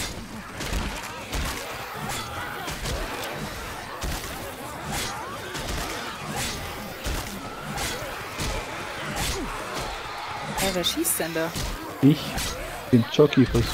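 A blade swings and slashes with sharp thuds.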